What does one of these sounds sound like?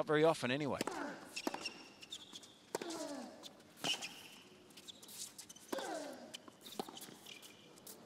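Tennis balls are struck sharply back and forth by rackets.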